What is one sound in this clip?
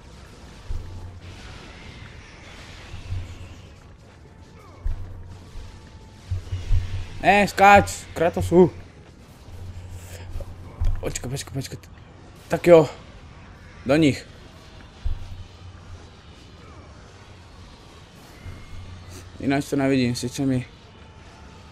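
Blades slash and strike in rapid bursts of video game combat.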